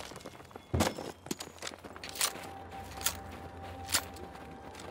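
Gunshots crack in loud single blasts.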